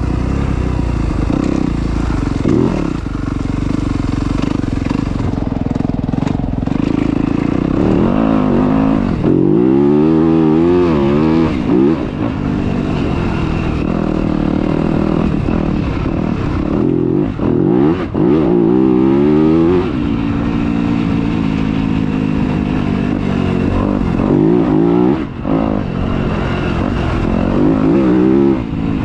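A dirt bike engine revs up and down close by.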